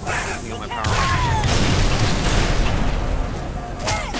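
An explosion crackles and booms.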